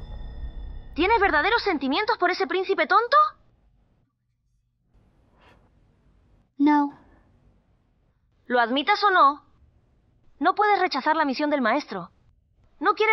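A young woman speaks in a low, cold voice close by.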